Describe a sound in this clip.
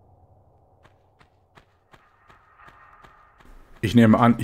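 Footsteps tread softly on ground.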